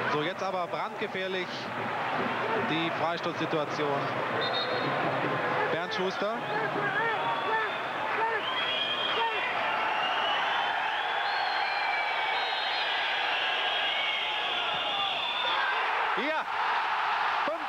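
A stadium crowd roars and whistles in a large open space.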